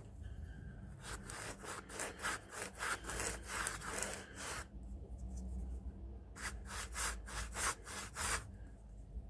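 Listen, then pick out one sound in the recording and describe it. A brush scrubs a hard surface in quick, rhythmic strokes.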